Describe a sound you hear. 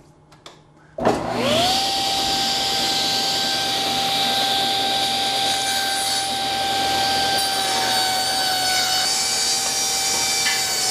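A table saw motor starts up and runs with a steady whine.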